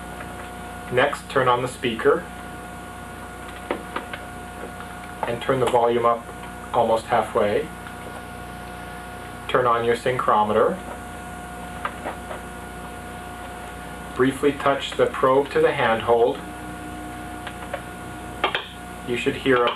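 A woman speaks calmly close by, in short phrases with pauses.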